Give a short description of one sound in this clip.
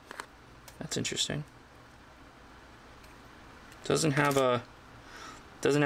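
A folding knife blade clicks.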